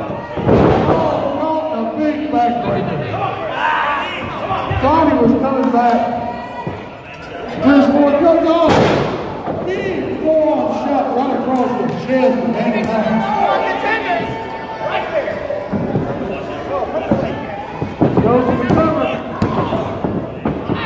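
A man shouts loudly at close range.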